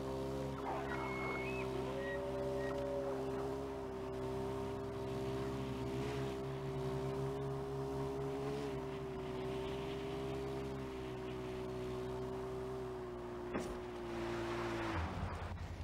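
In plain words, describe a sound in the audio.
A quad bike engine hums steadily.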